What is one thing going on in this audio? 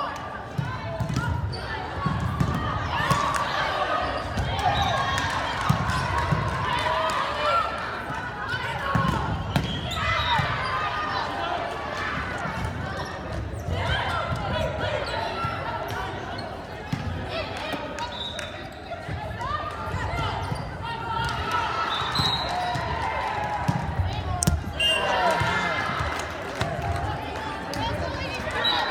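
Young women call out and shout across a large echoing gym.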